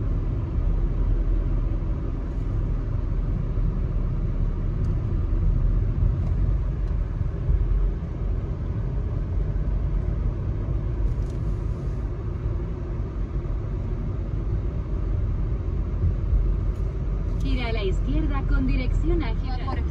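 A car engine hums steadily with road rumble from inside a moving car.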